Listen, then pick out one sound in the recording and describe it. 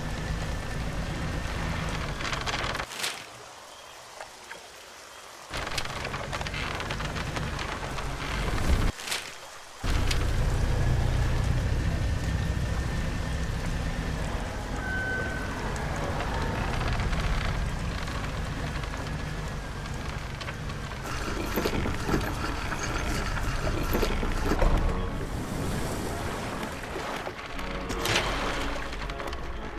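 A boat engine hums steadily at low pitch.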